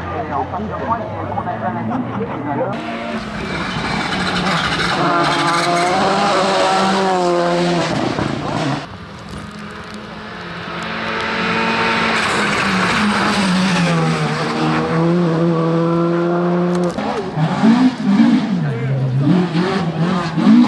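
A rally car engine roars loudly, revving up and down as the car speeds past.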